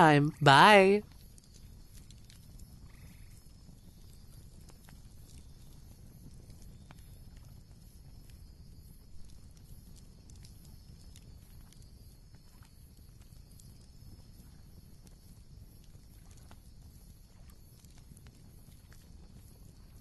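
Embers crackle and hiss softly.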